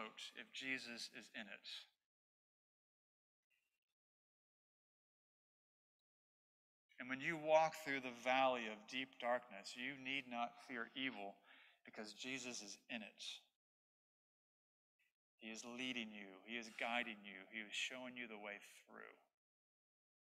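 A man preaches calmly into a microphone, heard through loudspeakers in a large room, with long pauses.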